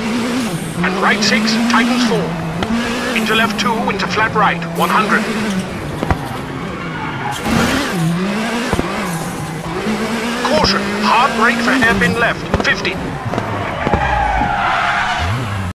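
A rally car engine hums and revs, shifting up and down through the gears.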